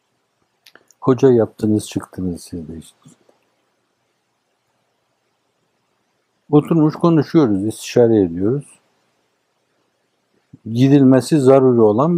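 An elderly man speaks slowly and with emphasis into a nearby microphone, with long pauses.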